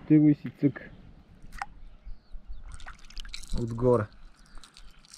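Water splashes and ripples softly close by.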